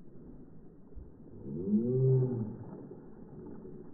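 Water splashes loudly as a large fish is dropped into it.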